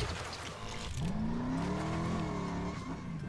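A car engine revs up and rises in pitch.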